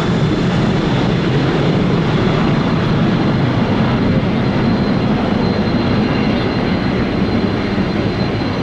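A jet airliner's engines roar loudly as it climbs away overhead.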